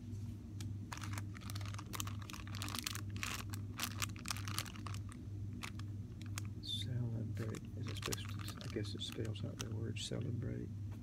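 A plastic-wrapped package crinkles as a hand handles it.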